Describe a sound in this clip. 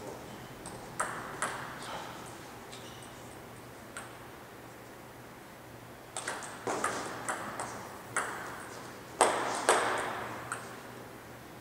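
A table tennis ball clicks back and forth off paddles and a table, echoing in a large hall.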